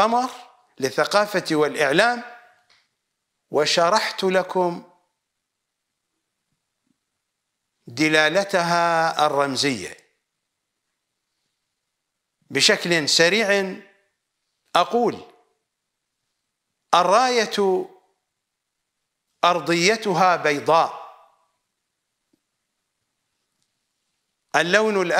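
A middle-aged man speaks with emphasis into a close microphone, in bursts with pauses between.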